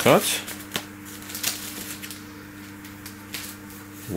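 A plastic wrapper rustles and crinkles in someone's hands.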